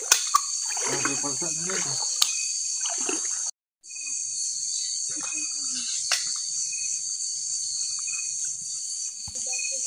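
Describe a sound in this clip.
Water splashes as people wade through a shallow stream.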